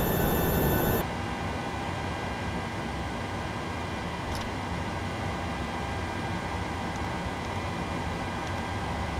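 A jet's hum is heard muffled from inside, quieter and steady.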